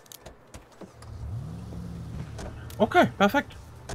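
A car engine starts and idles with a low hum.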